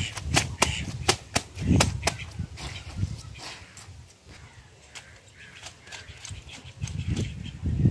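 Water splashes and squelches under scrubbing hands.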